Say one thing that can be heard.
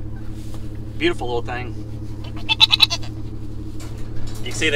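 A young goat bleats close by.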